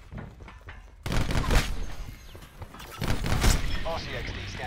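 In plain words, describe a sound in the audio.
A rifle fires loud shots that ring out.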